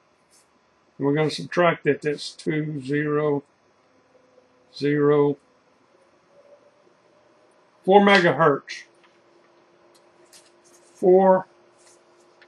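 A man's voice speaks in short bursts through a radio loudspeaker.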